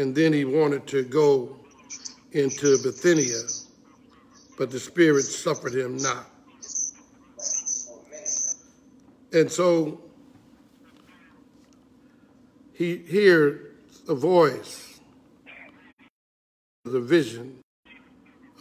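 An older man speaks slowly and calmly into a microphone, with pauses.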